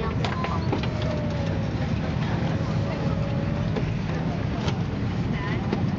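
Overhead bins click and bump as they are opened.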